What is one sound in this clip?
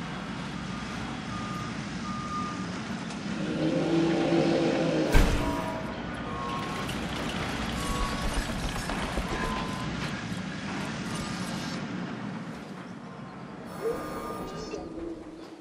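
Short soft interface blips chime now and then.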